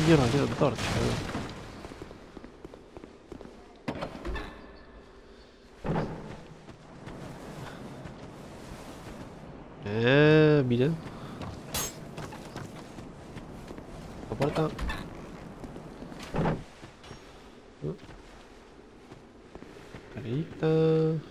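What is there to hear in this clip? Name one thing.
Armoured footsteps thud on stone and earth.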